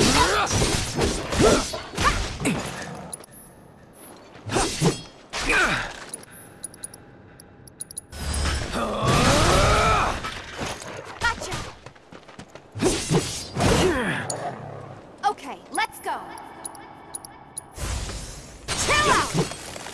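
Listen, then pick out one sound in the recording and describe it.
A sword slashes and strikes repeatedly.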